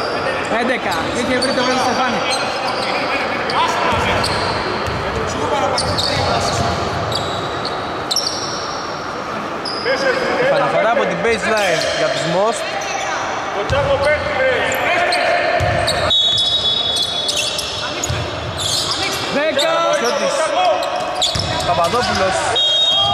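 Men shout and call to each other across the court.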